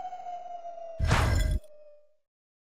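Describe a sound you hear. A toy doll thuds against the floor.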